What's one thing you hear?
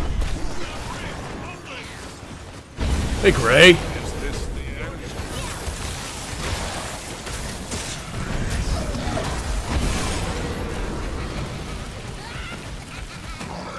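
Fire bursts with a loud roar.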